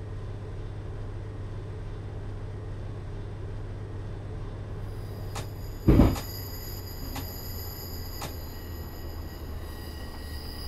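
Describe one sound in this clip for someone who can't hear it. A train engine hums with a low, steady drone.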